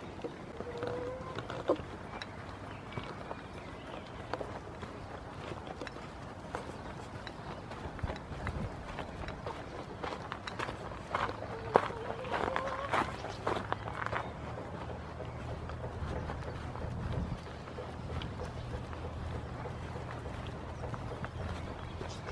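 Wind blows outdoors, rumbling low.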